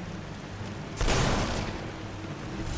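A magic spell bursts with a loud crackling whoosh.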